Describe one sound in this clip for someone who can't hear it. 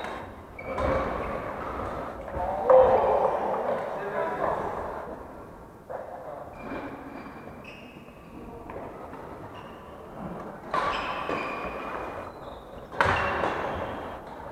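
Rackets smack a shuttlecock back and forth, echoing in a large hall.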